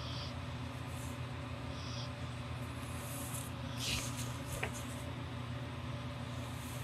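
A pen scratches on paper in short strokes.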